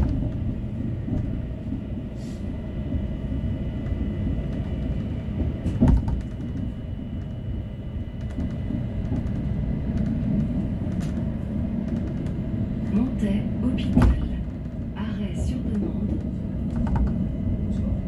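A train rumbles steadily along rails from inside the cab.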